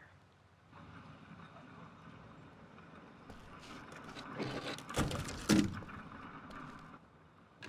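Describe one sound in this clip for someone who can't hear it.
Quick footsteps patter across stone.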